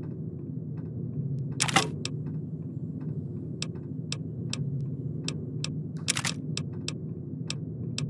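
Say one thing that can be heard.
Soft menu clicks tick again and again as a selection moves down a list.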